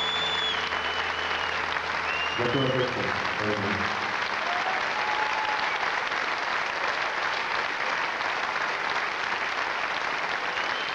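A large crowd claps and cheers loudly in a big hall.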